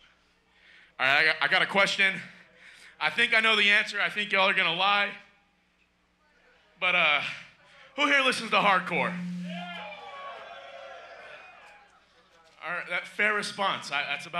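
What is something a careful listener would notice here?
A man shouts into a microphone over loudspeakers.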